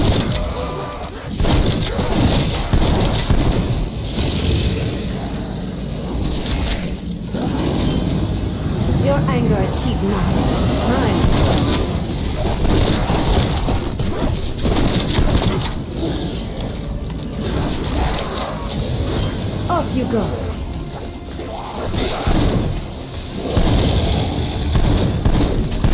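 Zombies snarl and groan up close.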